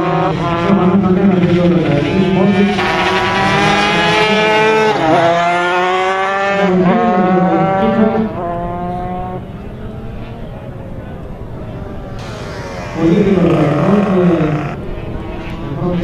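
A motorcycle engine roars, revving up and down as it races past.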